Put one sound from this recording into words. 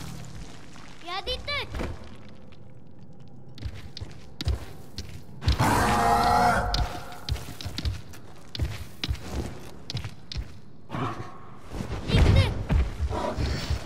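A large beast lets out high, warbling cries.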